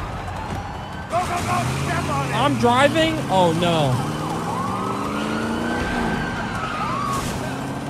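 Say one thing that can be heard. A car engine revs and roars as the car pulls away.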